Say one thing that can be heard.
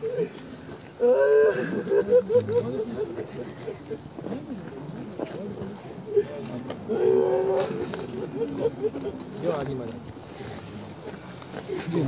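A crowd of men and women shouts and cries out close by.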